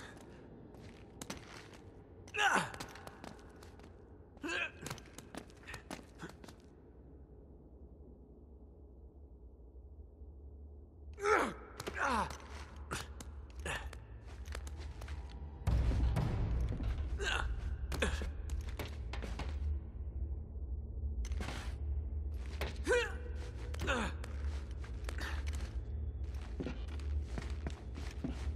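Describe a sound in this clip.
Hands and feet thud and scrape against stone while climbing.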